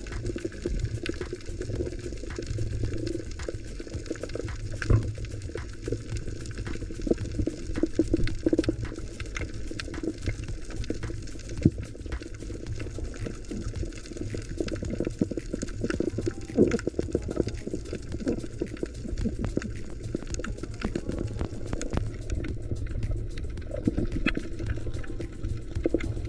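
Water rumbles with a low, muffled sound underwater.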